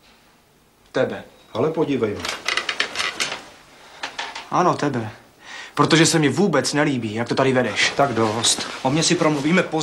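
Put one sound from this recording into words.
A middle-aged man speaks loudly and angrily, close by.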